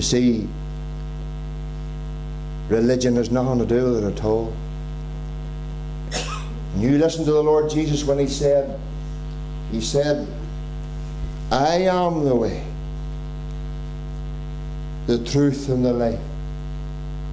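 A middle-aged man speaks with animation into a microphone, in short bursts with pauses, heard through a loudspeaker.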